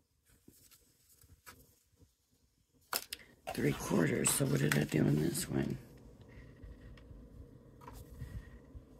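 Stiff paper rustles and slides under hands.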